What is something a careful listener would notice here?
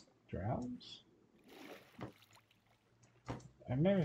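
Water splashes as a swimmer climbs out.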